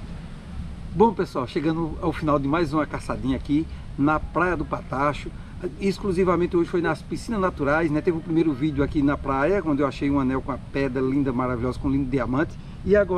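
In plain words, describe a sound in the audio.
A middle-aged man talks calmly and close to the microphone, outdoors.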